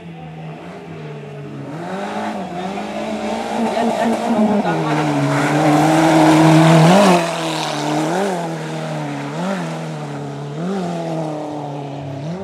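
A car engine revs hard, growing louder as it approaches, then rising and falling in pitch with gear changes as it speeds away.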